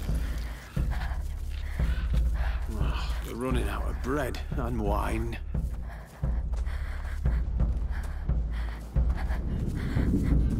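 Footsteps crunch over dry straw and gravel.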